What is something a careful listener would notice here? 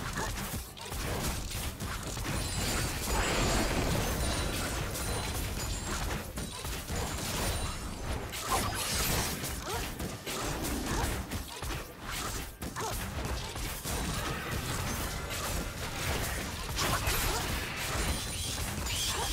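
Spell effects whoosh and crackle in a video game fight.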